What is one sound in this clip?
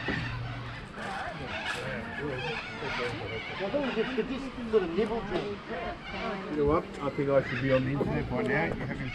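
A group of adults chat and laugh nearby outdoors.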